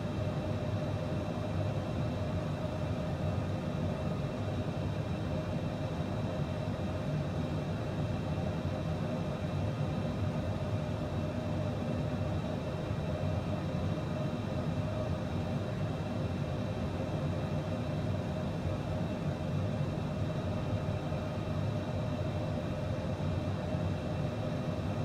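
Jet engines hum and roar steadily.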